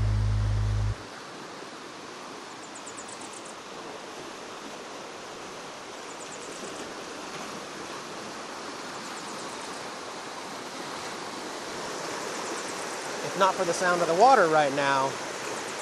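A river rushes steadily over rocks nearby.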